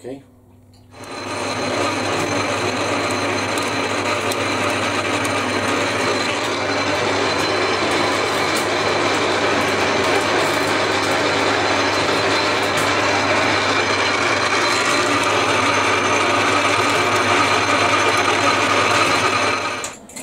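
A lathe whirs steadily as it spins a spool of wire.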